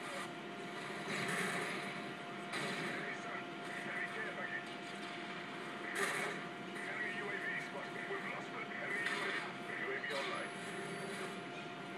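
Explosions boom with heavy blasts.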